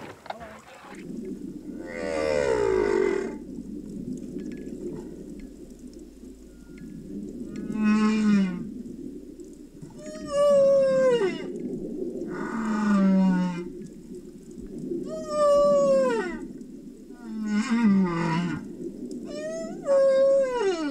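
A humpback whale sings long, swooping moans and squeals underwater.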